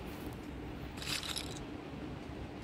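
Casino chips click softly as bets are placed.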